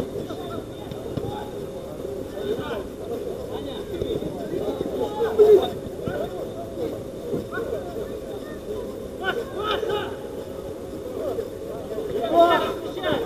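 Men shout and call out to each other from a distance across an open outdoor pitch.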